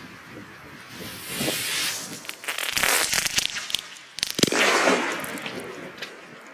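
A firework hisses and sputters loudly as it burns on the ground.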